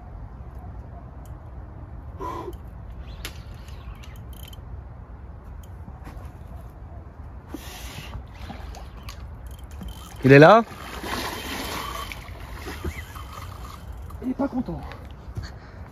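A fishing reel clicks as line is wound in.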